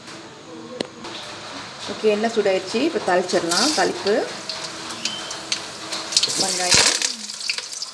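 Hot oil sizzles and crackles in a metal pan.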